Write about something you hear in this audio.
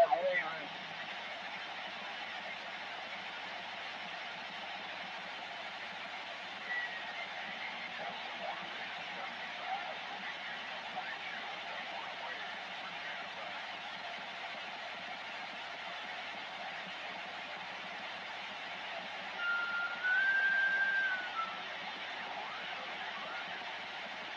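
Radio static hisses steadily from a loudspeaker.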